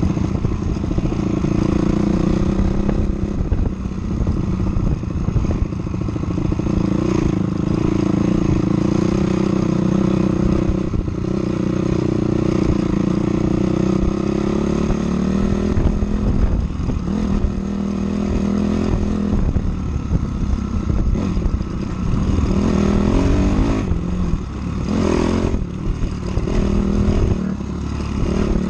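A dirt bike engine roars and revs up and down.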